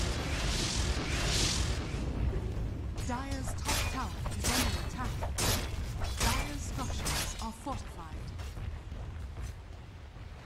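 Swords clash and magic spells crackle and whoosh.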